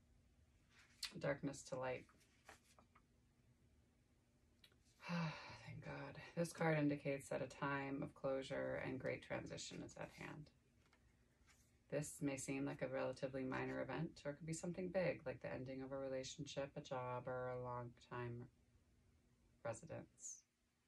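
A young woman speaks calmly nearby, reading out.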